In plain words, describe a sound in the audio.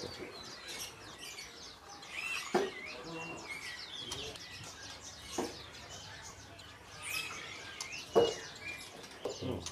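A songbird sings a fast, varied song of chirps and whistles close by.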